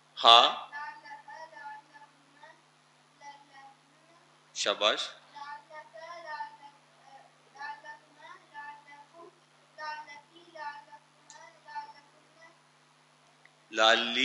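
An elderly man speaks calmly through a clip-on microphone, lecturing.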